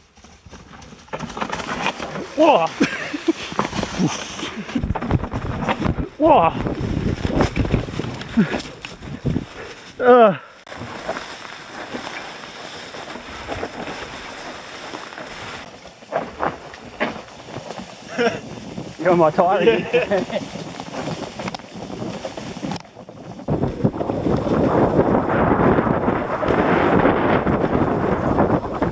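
Bicycle tyres roll and rattle over a rough dirt trail.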